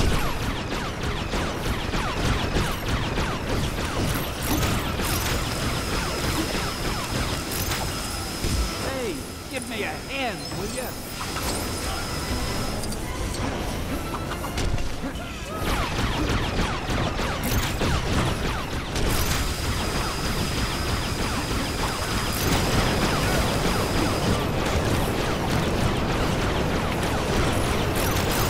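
Laser blasts fire rapidly and keep crackling.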